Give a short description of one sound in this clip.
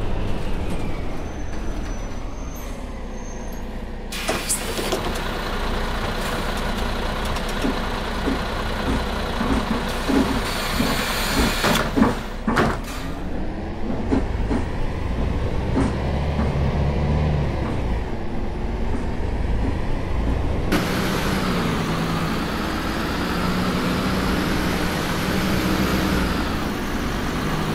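A bus engine rumbles steadily as the bus pulls away and drives on.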